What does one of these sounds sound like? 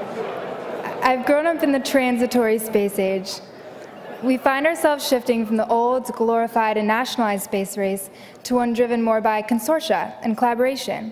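A young woman speaks warmly through a microphone over loudspeakers.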